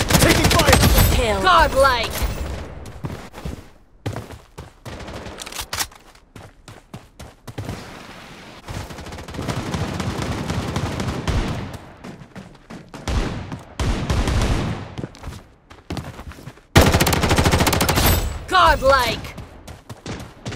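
Rapid gunfire bursts out at close range.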